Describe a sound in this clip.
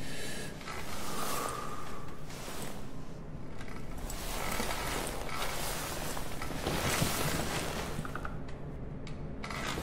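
Bedsheets rustle and shift as someone moves under a blanket.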